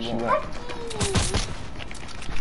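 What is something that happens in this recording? A gunshot fires in a video game.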